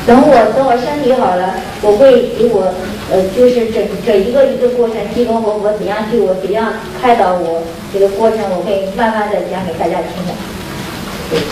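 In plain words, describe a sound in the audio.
A woman sobs and speaks tearfully into a microphone.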